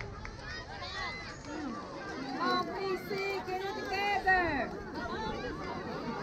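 Young children shout and cheer across an open field outdoors.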